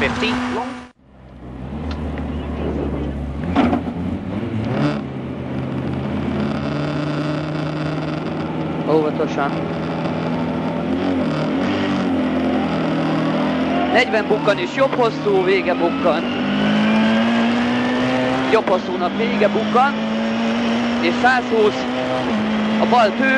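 A rally car engine roars loudly from inside the car, revving up and down.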